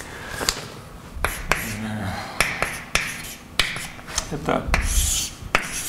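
Chalk taps and scrapes sharply on a blackboard.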